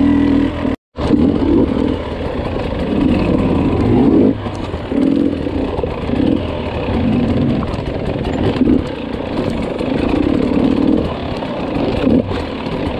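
Tyres crunch and scrape over loose rocks.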